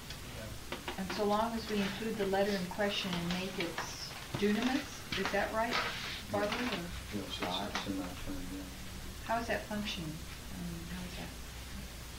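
A woman reads aloud calmly, close by.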